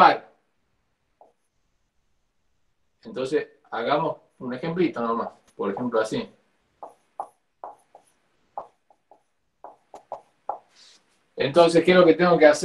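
A young man speaks calmly, as if lecturing, in short bursts.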